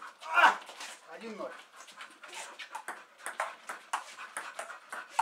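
A ping-pong ball clicks back and forth against paddles and a table.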